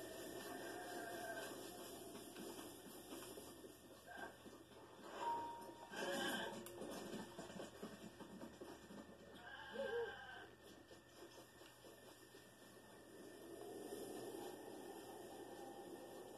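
Video game music and sound effects play from a television.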